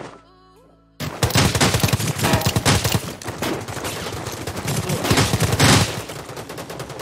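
A rifle fires rapid bursts of gunshots close by.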